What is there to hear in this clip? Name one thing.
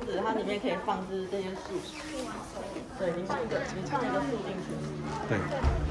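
A woman speaks softly to children.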